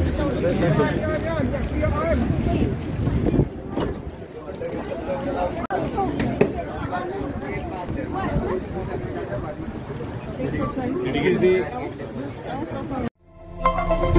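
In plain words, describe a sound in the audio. A crowd of men and women talk and shout excitedly close by.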